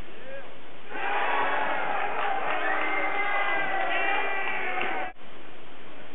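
A crowd cheers loudly.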